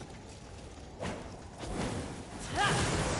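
A fiery blade whooshes through the air in bursts.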